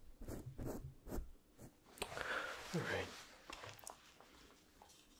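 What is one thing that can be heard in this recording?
Foam rustles and squishes right against a microphone.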